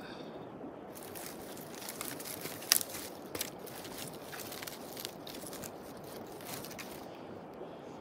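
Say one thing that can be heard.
Twigs crackle and snap as a fire catches.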